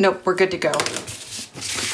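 Paper rustles as hands slide it across a table.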